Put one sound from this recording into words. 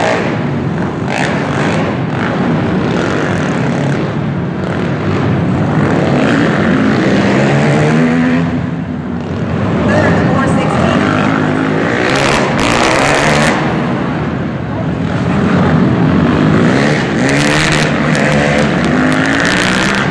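Quad bike engines rev and whine around a dirt track.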